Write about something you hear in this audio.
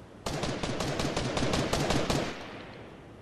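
Fireworks crackle and pop rapidly close by.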